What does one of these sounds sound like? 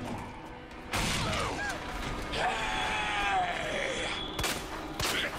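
A zombie groans and snarls up close.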